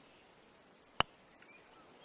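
A putter taps a golf ball with a sharp click.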